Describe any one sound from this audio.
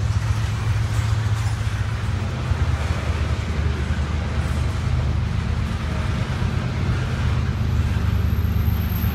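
Freight cars rumble past on the rails nearby.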